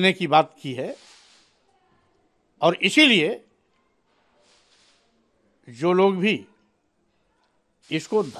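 An older man speaks close to a microphone in short, emphatic bursts with pauses.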